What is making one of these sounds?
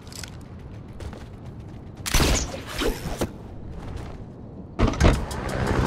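A helicopter's rotor thumps as it flies.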